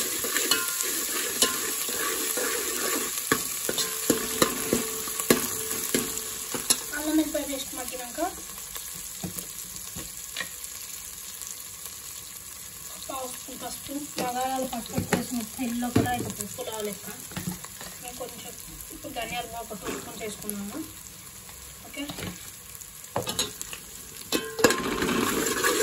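Oil sizzles in a hot pot.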